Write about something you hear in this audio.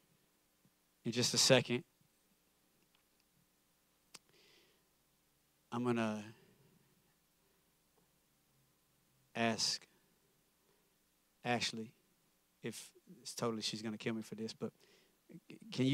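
A man speaks with pauses through a loudspeaker in a large echoing hall.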